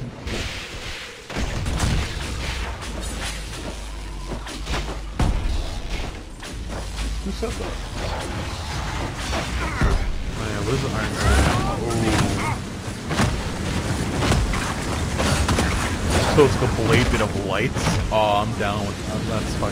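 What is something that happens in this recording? Magic blasts crackle and burst in a fight.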